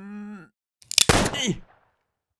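A rifle shot bangs once.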